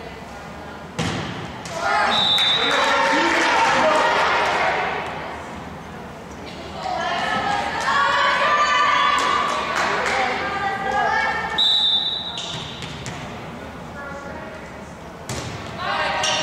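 A volleyball is hit with sharp thumps.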